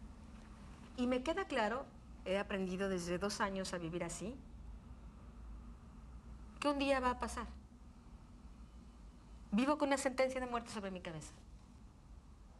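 A middle-aged woman speaks earnestly and quietly, close by.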